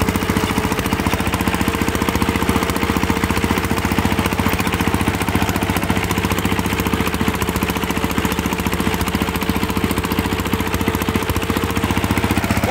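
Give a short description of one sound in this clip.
A single-cylinder diesel engine chugs loudly and steadily up close.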